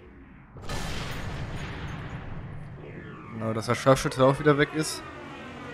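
A bullet whooshes slowly through the air.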